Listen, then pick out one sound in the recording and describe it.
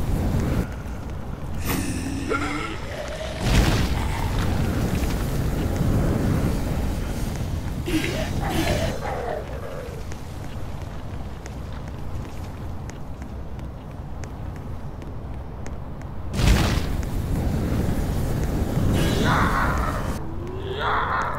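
A flamethrower roars in long rushing bursts.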